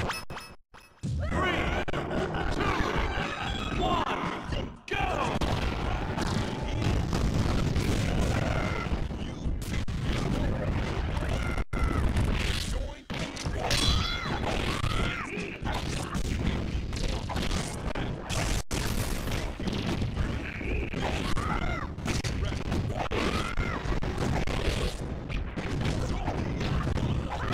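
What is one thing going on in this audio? Video game fighters hit each other with punchy thuds and whooshes.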